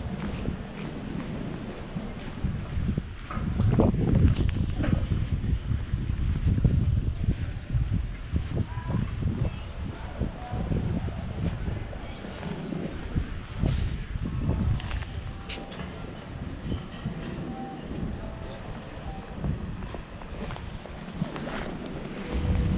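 A car's tyres rumble on asphalt as it drives slowly along.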